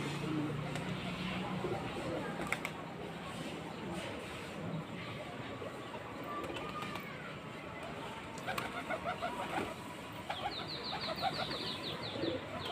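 Pigeons flap their wings in short bursts.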